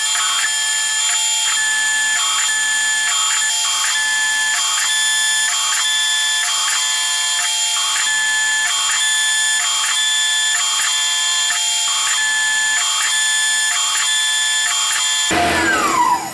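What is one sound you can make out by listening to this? A milling machine whines steadily as it cuts metal, with a rhythmic pulse.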